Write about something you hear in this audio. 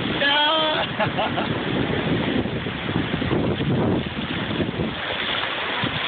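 Shallow waves wash and fizz over the sand.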